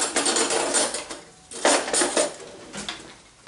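Food sizzles loudly in a frying pan.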